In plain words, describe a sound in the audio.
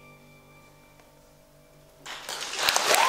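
A violin and piano hold a soft final note.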